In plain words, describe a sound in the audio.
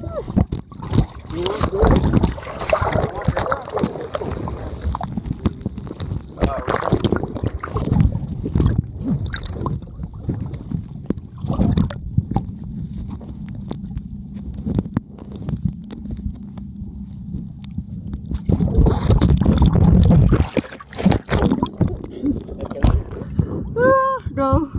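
Water splashes and bubbles close by.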